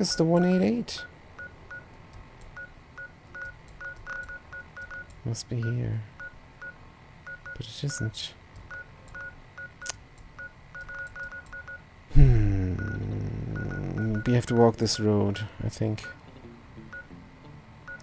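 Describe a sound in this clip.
Soft electronic ticks repeat quickly as a menu cursor moves.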